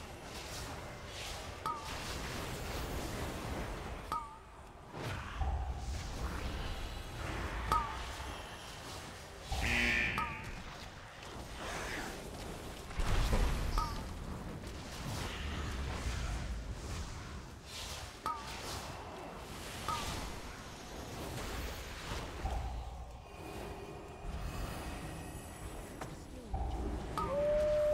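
Magic spells whoosh and crackle during a fight.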